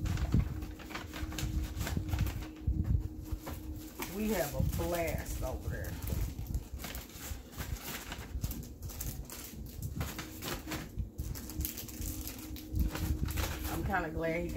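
Paper gift bags rustle as they are handled.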